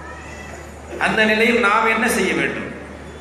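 An elderly man speaks forcefully into a microphone over loudspeakers outdoors.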